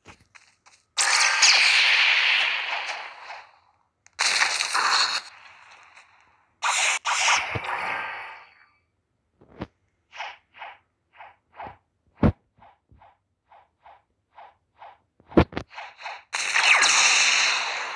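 Bright energy blasts burst loudly with a hissing rush, again and again.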